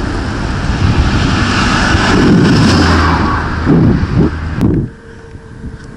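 Wind rushes over the microphone of a moving bicycle.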